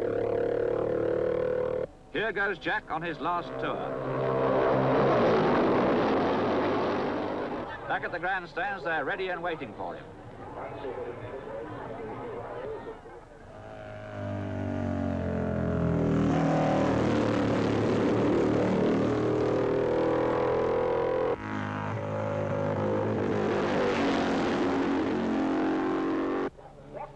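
A racing motorcycle engine roars past at high revs, rising and falling in pitch.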